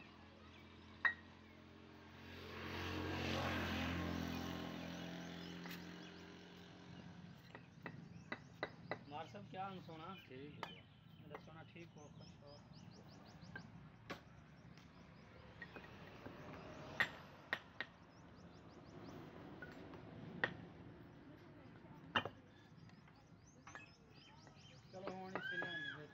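Trowels tap and scrape on bricks.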